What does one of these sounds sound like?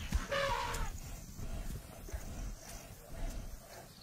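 Lions snarl and growl as they scuffle in the dust.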